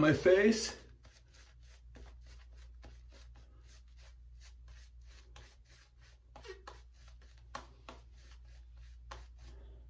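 A shaving brush swishes lather over a man's cheeks.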